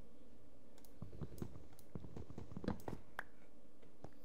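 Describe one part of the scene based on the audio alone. A wooden trapdoor clacks open and shut several times.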